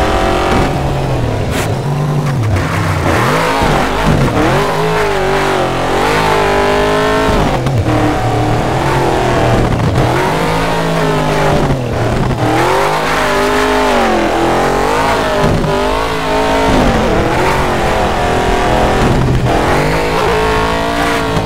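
A racing truck engine roars, revving up and down as gears change.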